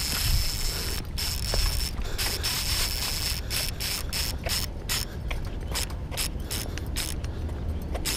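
A fishing reel clicks rapidly as line is wound in.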